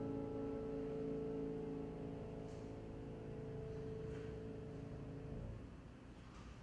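A piano chord rings out and fades.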